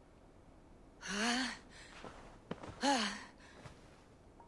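A young man gasps and groans close by.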